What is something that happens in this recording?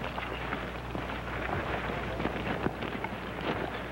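Leaves and gravel crunch as men scuffle on the ground.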